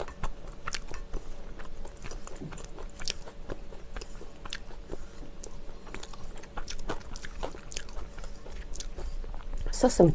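Chopsticks click against a pan.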